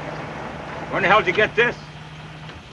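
A man speaks briefly in a low voice nearby.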